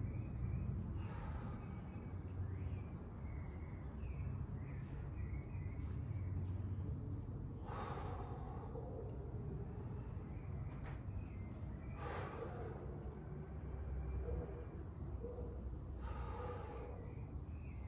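A man breathes out heavily in short, noisy bursts.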